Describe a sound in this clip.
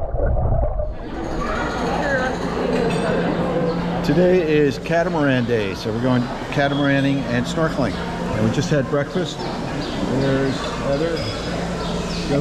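Many people chatter in the background of a large room.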